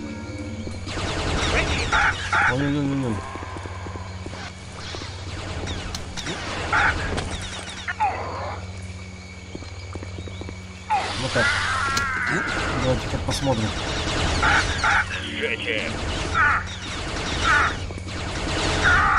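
A lightsaber swings with sharp whooshes.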